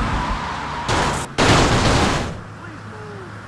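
A car crashes and scrapes as it flips over.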